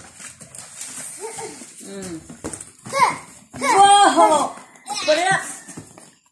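Cardboard scrapes and rustles as a box is opened.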